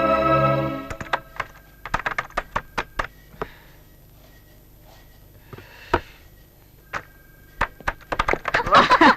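A man types on a computer keyboard with quick clicks.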